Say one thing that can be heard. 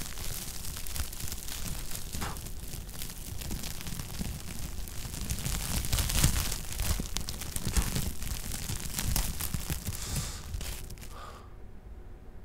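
A sparkler fizzes and crackles close by.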